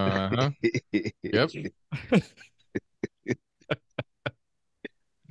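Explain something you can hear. A man laughs loudly into a microphone.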